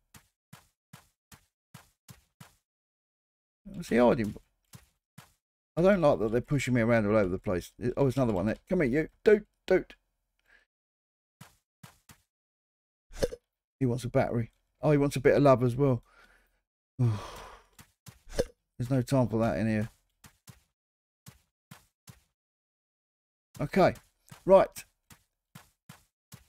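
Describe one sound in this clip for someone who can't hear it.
Footsteps patter lightly on grass.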